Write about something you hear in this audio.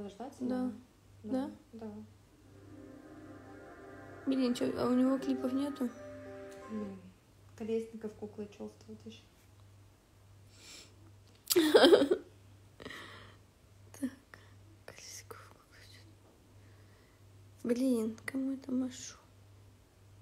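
A young woman speaks casually close to a phone microphone.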